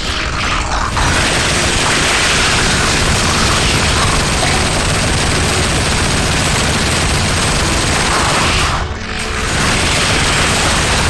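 A heavy machine gun fires in a rapid, unbroken roar.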